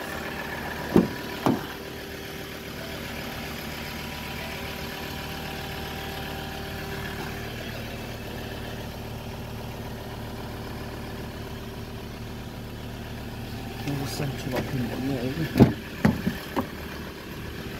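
A car door unlatches with a sharp click and swings open.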